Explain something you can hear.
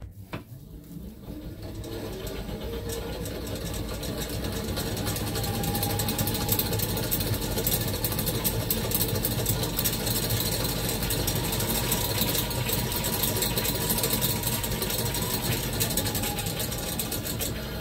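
An exercise bike whirs as it is pedalled fast.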